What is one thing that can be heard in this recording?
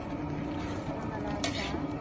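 Water pours into a pot of boiling broth.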